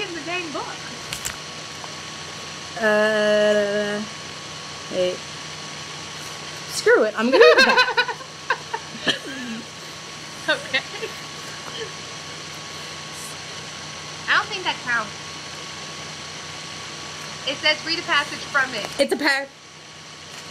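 A teenage girl talks and laughs over an online call.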